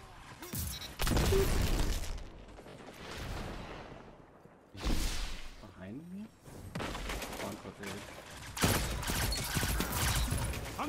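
Game gunfire bursts loudly.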